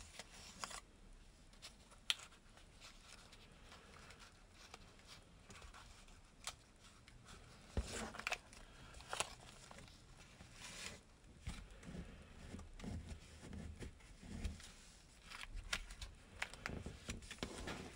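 Paper crinkles and rustles as it is folded by hand.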